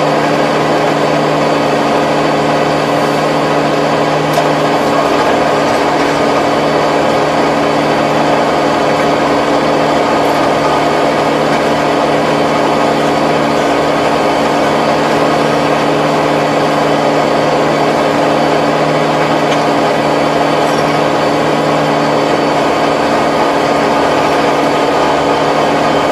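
A tractor engine drones loudly and steadily close by.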